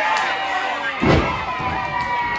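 A wrestler lands with a heavy thud onto a wrestling ring mat.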